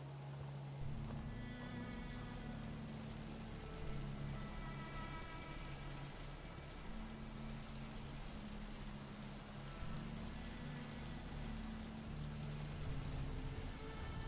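Footsteps tread through grass.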